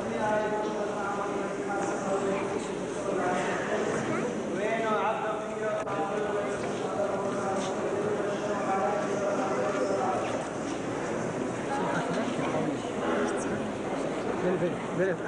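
A congregation of men and women sings together in a large echoing hall.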